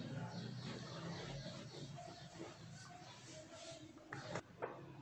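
A whiteboard eraser rubs across a board.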